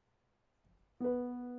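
A piano plays a note.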